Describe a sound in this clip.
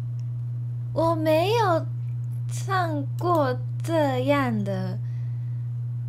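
A young woman speaks in a high, playful voice close to a microphone.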